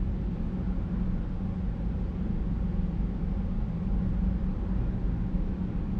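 A jet engine roars steadily with a deep, rumbling drone.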